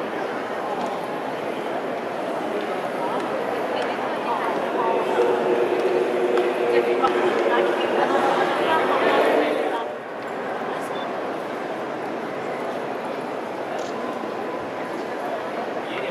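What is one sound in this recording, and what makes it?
A large crowd murmurs and chatters, echoing in a vast hall.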